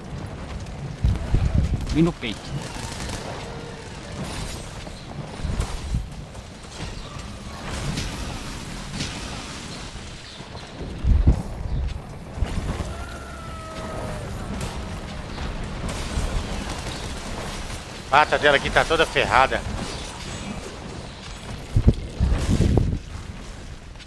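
Heavy blows and crashes thud hard.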